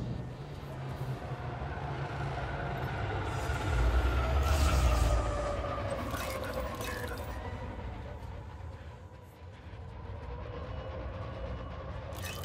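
A spaceship engine drones with a low rumble that swells and then eases off.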